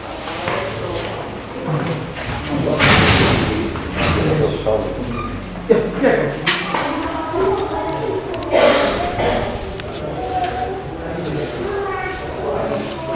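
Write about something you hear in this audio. Several men talk over one another nearby in a busy crowd.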